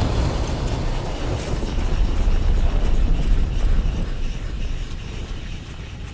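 Dark energy hisses and crackles.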